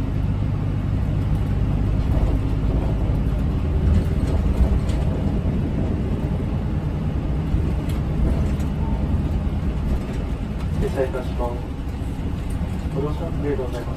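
A bus's tyres roll and hum on the road.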